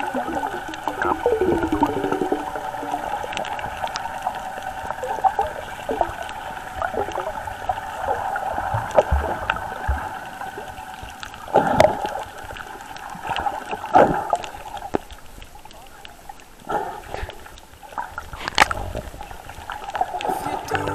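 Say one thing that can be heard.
Muffled water swirls and splashes around swimmers under the surface.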